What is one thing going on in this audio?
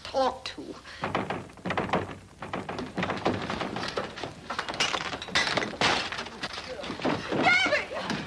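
A crowd of people shout and clamour in a room.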